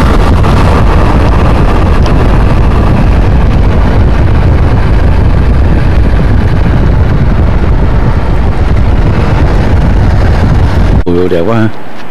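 Wind buffets the microphone loudly outdoors.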